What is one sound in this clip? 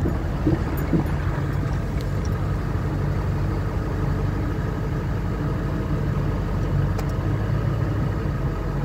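A pickup truck's engine rumbles as it drives slowly, heard from inside the cab.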